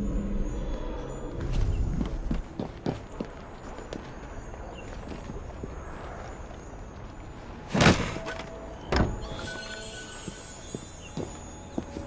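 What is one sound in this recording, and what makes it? Footsteps thud and scrape on a rooftop.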